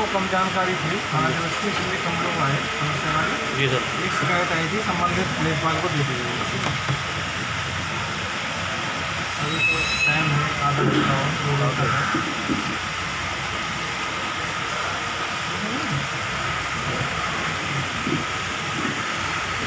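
A middle-aged man speaks calmly and steadily, close to a microphone.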